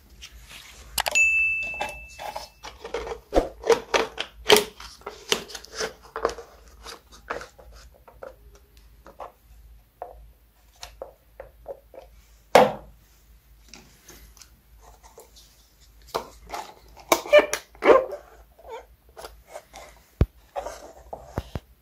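Plastic cups tap and knock on a table.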